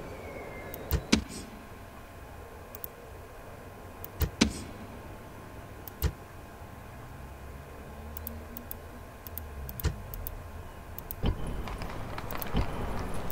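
Game interface clicks sound sharply now and then.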